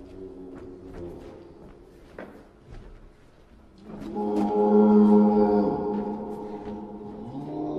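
Footsteps knock on a hard stage floor.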